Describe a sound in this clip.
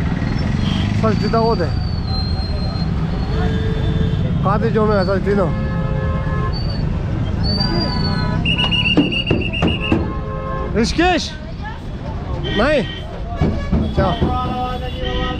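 Vehicle horns honk now and then.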